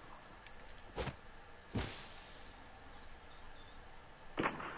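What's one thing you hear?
Sharp game impacts thud several times.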